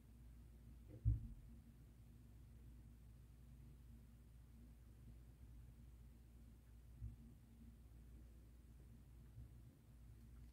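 A cup knocks lightly against a surface.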